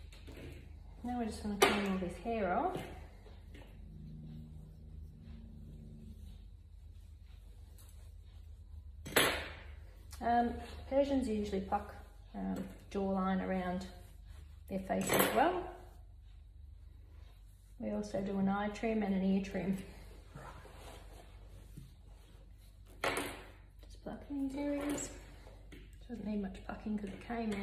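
An elderly woman talks softly and calmly close by.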